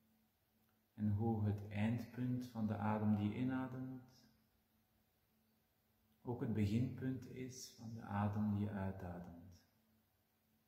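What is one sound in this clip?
A middle-aged man speaks calmly and softly close to a microphone.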